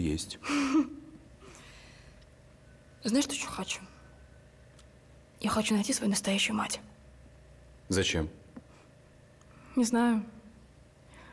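A young man speaks softly and close by, in short phrases with pauses.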